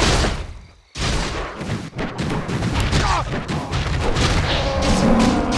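Weapons clash and hit repeatedly in a fight.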